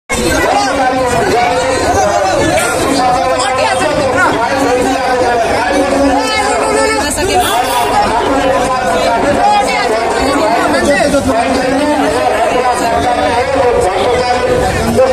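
Several men argue loudly and heatedly at close range, their voices overlapping.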